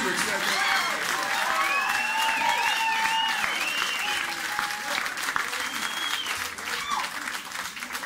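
People in the audience cheer and whistle.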